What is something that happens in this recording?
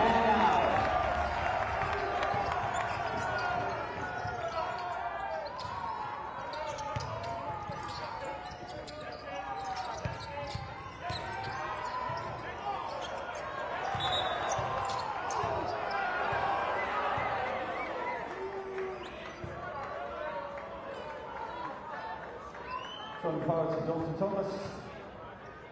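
A large crowd murmurs and cheers in an echoing indoor arena.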